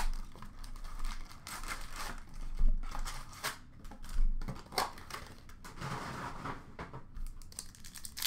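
Card packs clatter as they drop into a plastic bin.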